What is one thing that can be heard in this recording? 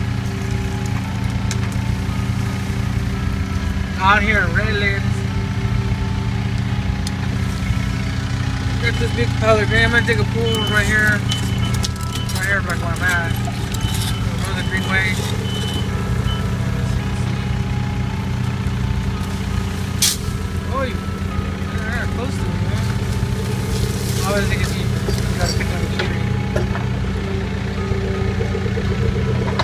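A small excavator's diesel engine rumbles steadily close by.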